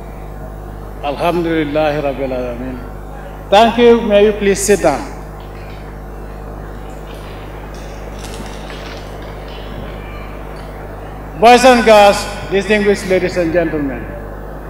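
A man speaks slowly and forcefully through a microphone and loudspeakers outdoors.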